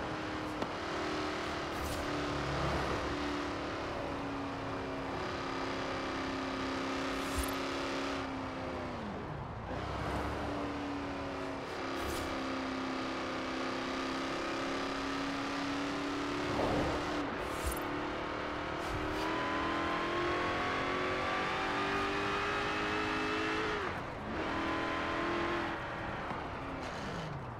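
A powerful car engine roars steadily, with its pitch rising and falling as it shifts gears.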